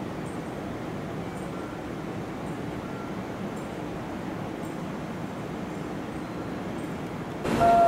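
Train wheels click over rail joints in a regular rhythm.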